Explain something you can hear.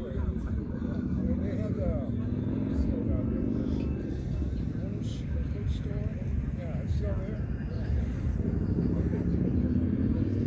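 A crowd murmurs and talks in the distance outdoors.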